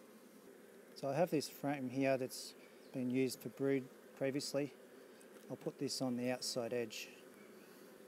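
A man speaks calmly near the microphone.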